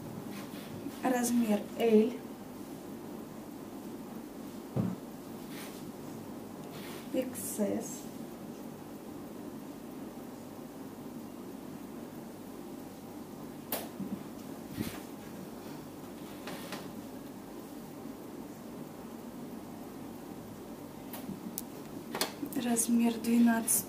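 Soft fabric rustles as clothes are handled and laid down.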